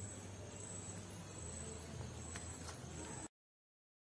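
Large leaves rustle as they are handled.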